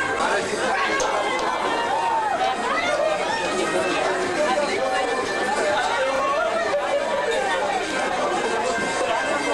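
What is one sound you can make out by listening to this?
A crowd of men and women chatter loudly all around.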